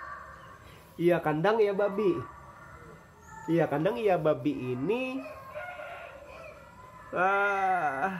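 A man chants in a melodic voice close by.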